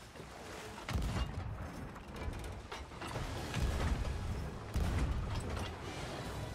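A cannon fires with deep booms.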